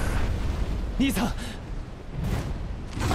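A young man calls out urgently.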